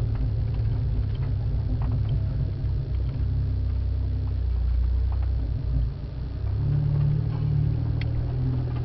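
A four-wheel drive engine rumbles low as the vehicle crawls slowly.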